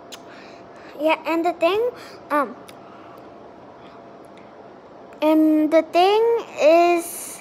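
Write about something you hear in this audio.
A young girl speaks close by, in a high, lively voice.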